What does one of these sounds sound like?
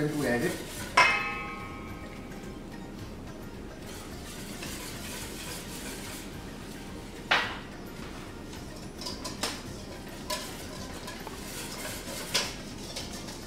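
A metal spoon clinks against a pan, ringing briefly.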